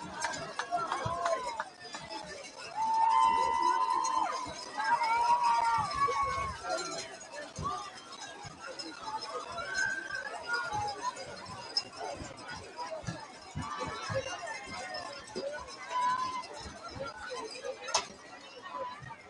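A crowd shouts and cheers outdoors at a sports game.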